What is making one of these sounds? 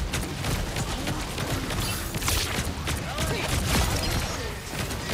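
Rapid gunfire and blasts crackle in a fast-paced game fight.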